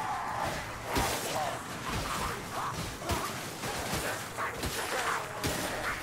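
Creatures screech and snarl as they attack.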